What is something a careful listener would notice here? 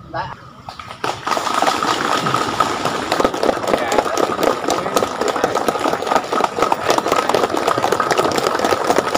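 A group of men talk over one another nearby.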